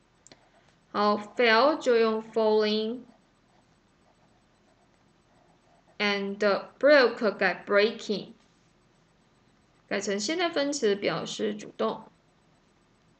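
A woman speaks slowly and clearly through a microphone, reading out in short phrases with pauses.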